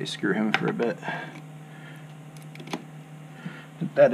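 A cable plug clicks into a computer board.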